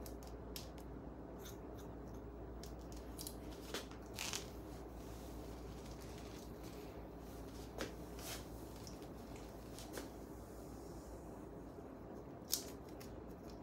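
Scissors snip through hair with sharp clicks.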